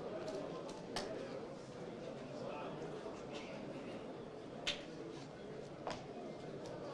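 Small plastic balls clack together as they are handled.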